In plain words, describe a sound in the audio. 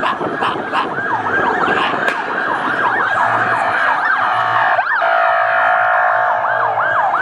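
Sirens wail rapidly up and down close by.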